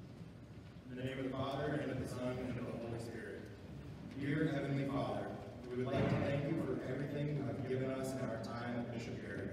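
A young man speaks calmly into a microphone, heard through loudspeakers in a large echoing hall.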